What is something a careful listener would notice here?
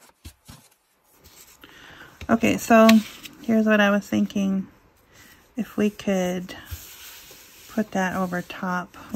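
Thin tissue paper rustles and crinkles.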